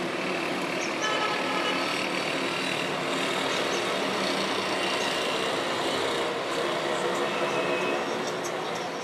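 Car horns honk now and then in the distance.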